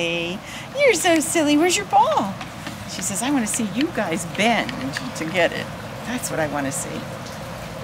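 A woman talks to a dog in a high, excited voice close by.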